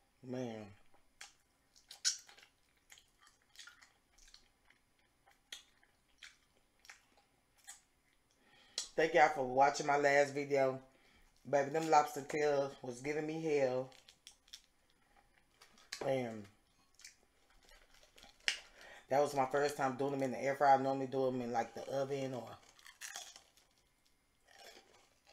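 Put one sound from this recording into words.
A young woman chews crunchy food with soft smacking sounds close up.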